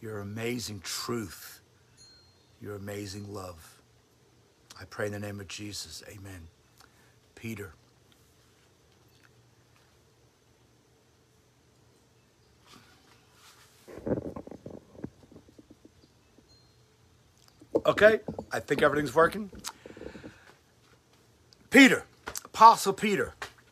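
A middle-aged man speaks calmly and close by, pausing often.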